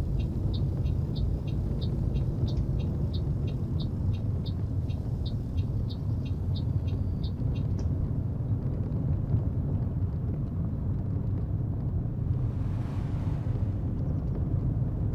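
Tyres crunch and rattle over a rough dirt road.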